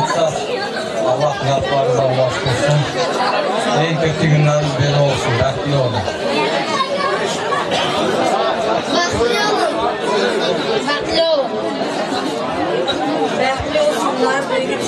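A crowd chatters.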